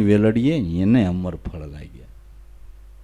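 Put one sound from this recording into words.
An elderly man sings a melodic line into a microphone, his voice rising and falling.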